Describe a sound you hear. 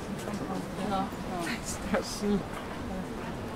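A man talks nearby.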